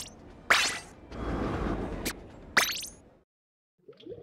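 A loud whoosh sweeps through.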